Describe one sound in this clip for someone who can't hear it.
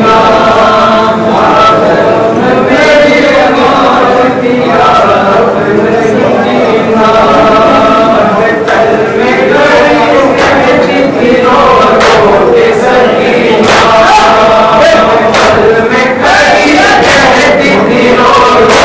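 A man chants loudly through a microphone and loudspeaker.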